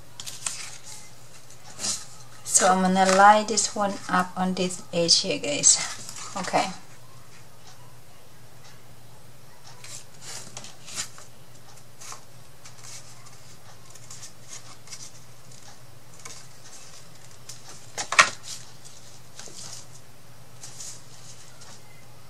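Paper rustles and scrapes as it is handled on a table.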